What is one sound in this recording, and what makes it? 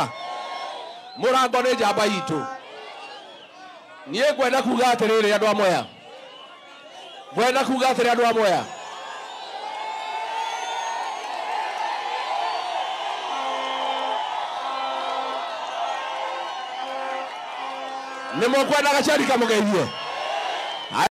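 A large crowd cheers and shouts outdoors.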